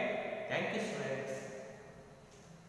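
A man speaks close by in a calm, teaching tone, in a room with a slight echo.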